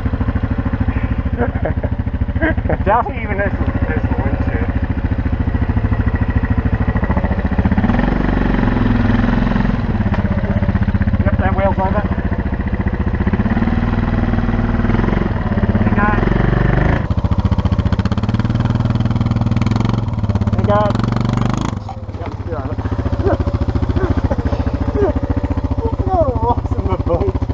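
A quad bike engine idles and revs unevenly close by.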